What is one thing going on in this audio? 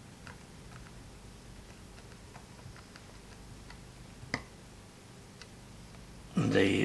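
A screwdriver clicks and ticks softly as it turns a small screw.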